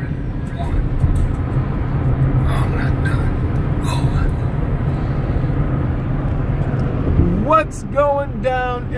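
A car engine hums and tyres roar steadily on a highway.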